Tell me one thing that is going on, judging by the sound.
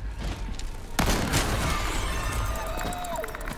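A heavy thud crashes as a body is knocked to the floor.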